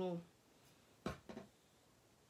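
A plastic bottle is set down with a light tap.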